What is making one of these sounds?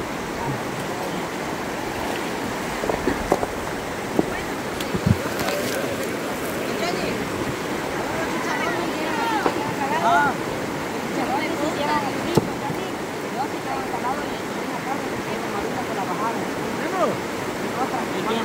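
A river rushes and gurgles steadily over rocks.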